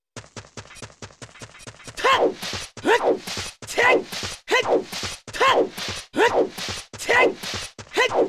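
Rhythmic swimming strokes splash through water.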